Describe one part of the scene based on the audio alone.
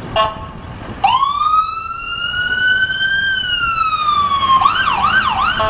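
A siren wails, rising and then falling.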